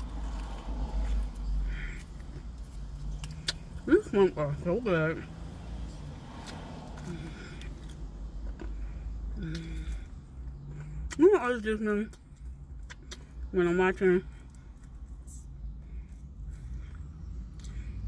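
A woman chews crunchy food close by.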